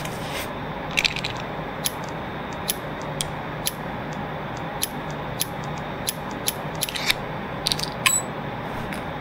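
Short clicks sound as small items are picked up one by one.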